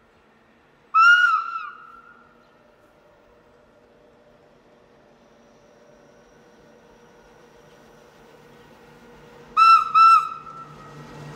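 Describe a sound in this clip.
A train horn blasts several times, echoing.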